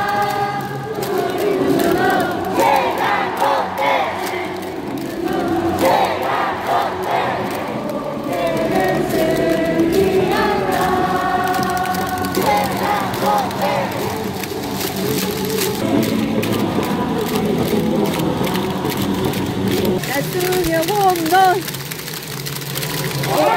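A large stadium crowd chants and sings together loudly.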